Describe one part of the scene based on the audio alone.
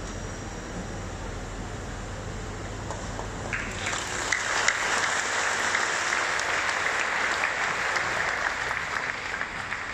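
A large crowd murmurs softly in a big echoing hall.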